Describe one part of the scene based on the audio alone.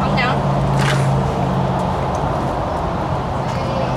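A glass door swings open.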